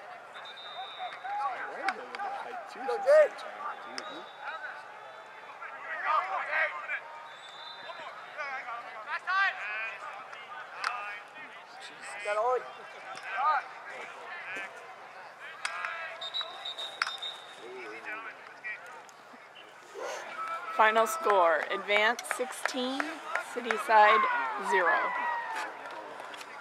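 Young women shout and call to each other outdoors across a sports field.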